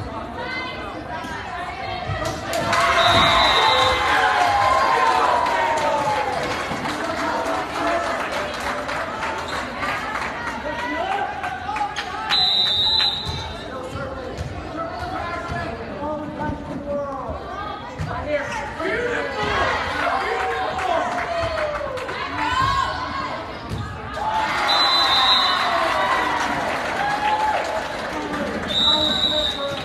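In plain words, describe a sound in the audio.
Young women on a team call out to each other.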